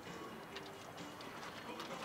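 Water runs from a tap into a metal bowl.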